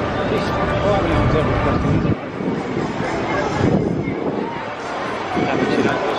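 A crowd of people chatters nearby on a busy street.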